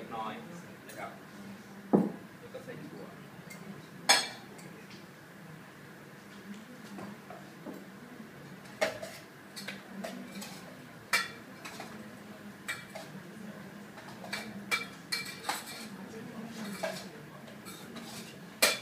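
Kitchen utensils clink and tap against dishes.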